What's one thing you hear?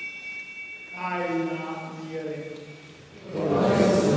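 An elderly man chants into a microphone in an echoing hall.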